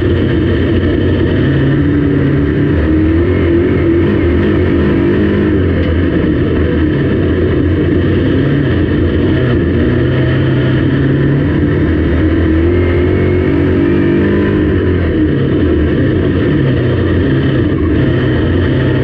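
A race car engine roars loudly and rises and falls in pitch as the car circles the track.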